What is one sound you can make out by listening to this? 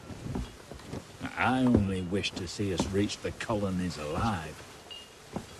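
A second man answers in a measured voice.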